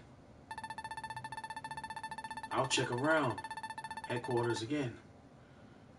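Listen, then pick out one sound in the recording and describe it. Rapid electronic bleeps chatter in a quick steady stream.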